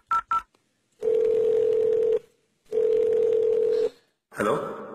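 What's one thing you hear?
A telephone rings in steady bursts through a phone line.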